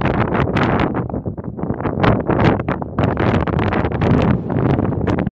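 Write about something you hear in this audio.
Strong wind gusts and buffets loudly outdoors.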